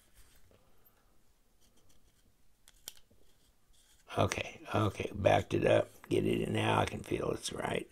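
Small metal parts click softly.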